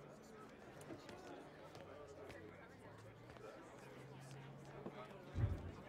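A double bass plays softly.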